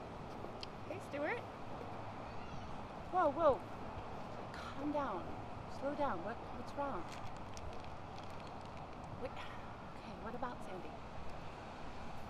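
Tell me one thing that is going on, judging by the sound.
A young woman talks quietly on a phone, sounding upset.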